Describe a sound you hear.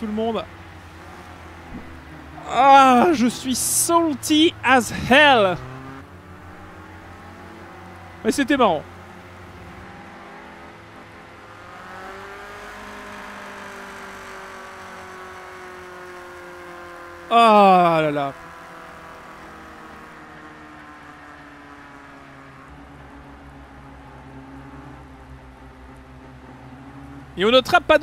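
Racing cars roar past at speed, one after another.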